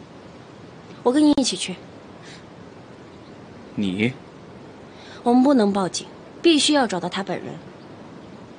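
A young woman speaks earnestly, close by.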